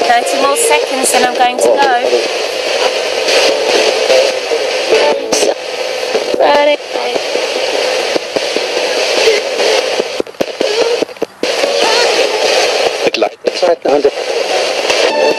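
A portable radio sweeps through FM stations, bursts of static and broken snatches of sound heard through a small speaker.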